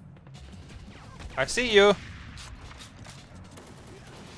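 A rifle fires a single shot.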